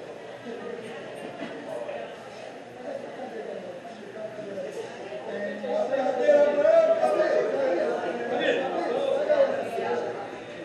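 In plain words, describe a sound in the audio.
Several men chat in the background.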